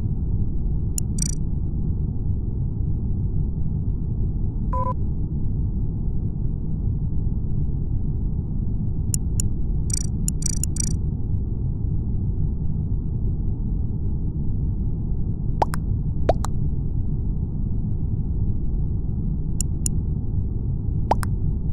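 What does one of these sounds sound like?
A soft game chime pings as chat messages arrive.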